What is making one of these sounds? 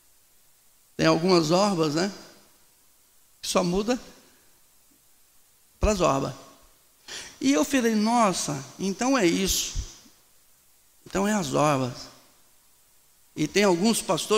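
A middle-aged man preaches with animation into a microphone, in short bursts with pauses.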